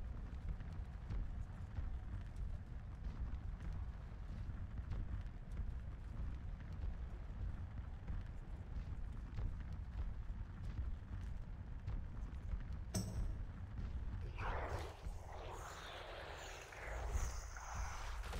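Fire roars and crackles from a burning creature.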